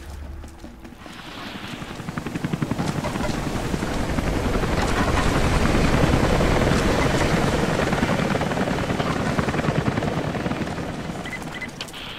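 A strong wind roars and rises, then slowly eases.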